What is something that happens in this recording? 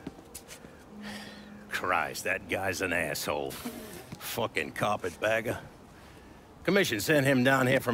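An older man speaks slowly and persuasively, close by.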